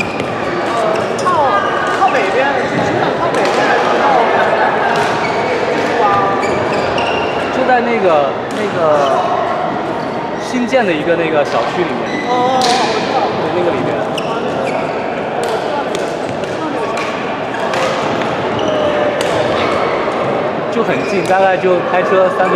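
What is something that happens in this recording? Shoes squeak on a hard court floor.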